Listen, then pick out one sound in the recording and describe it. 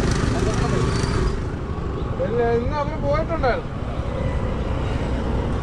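A scooter drives past on the road.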